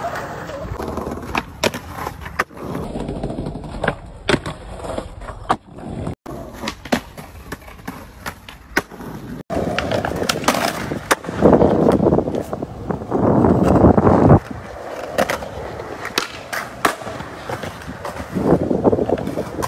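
Skateboard wheels roll over stone paving and concrete.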